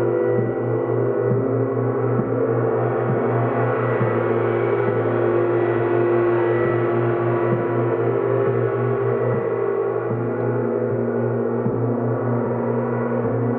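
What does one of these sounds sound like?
A woman rubs a singing bowl, making a sustained ringing tone.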